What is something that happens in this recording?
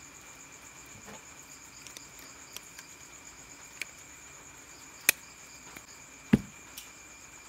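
Plastic battery holders click and snap onto cells.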